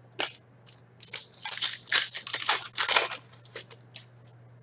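A plastic wrapper crinkles and tears as a pack is opened.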